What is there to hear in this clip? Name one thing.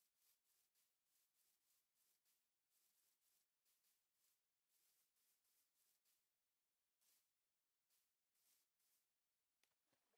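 Footsteps crunch softly on grass at a steady walking pace.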